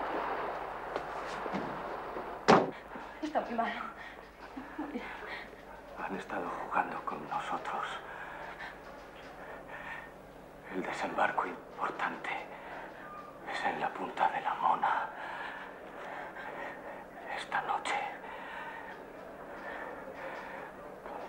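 An injured man speaks weakly close by.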